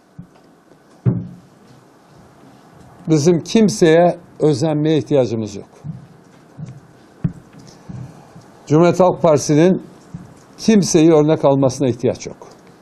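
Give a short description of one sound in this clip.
An elderly man speaks calmly and close by in a quiet room.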